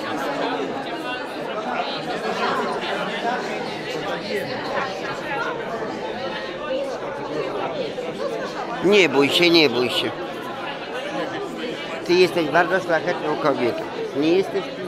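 A crowd of adults chatters all around.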